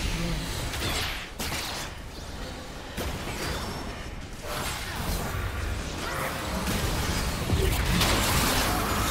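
Game spells blast and crackle in a busy fight.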